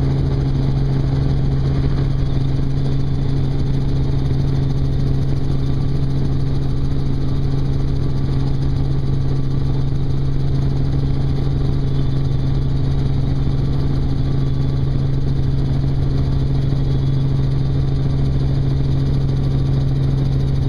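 A helicopter engine and rotor drone loudly and steadily.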